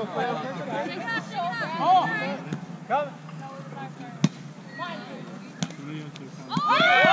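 Several young men and women call out and chatter outdoors.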